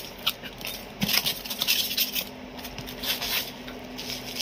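A blade scrapes and slices through packing tape.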